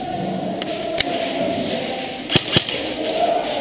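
Paintball guns fire with sharp pops in a large echoing hall.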